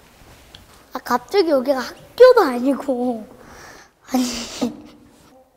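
A young boy speaks with animation.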